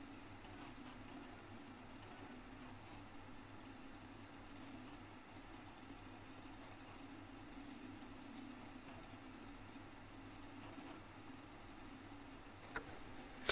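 Old computers hum steadily with a low drone.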